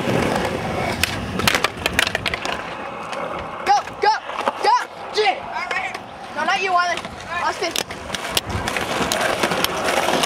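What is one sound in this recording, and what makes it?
A skateboard's tail snaps and clacks on the pavement.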